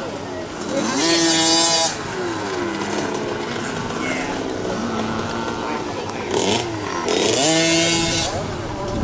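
A motorcycle engine whines loudly as it passes close by.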